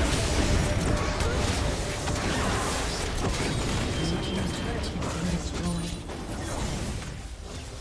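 Spell blasts and weapon hits crackle and thud in a fast fight.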